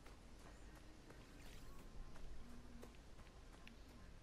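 Light footsteps run over a dirt path.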